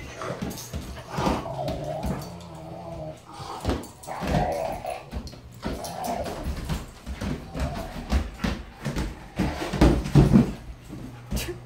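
A dog barks and whines excitedly close by.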